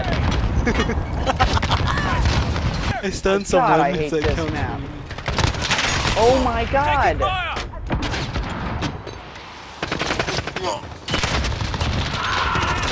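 Rapid gunfire bursts out in sharp, loud cracks.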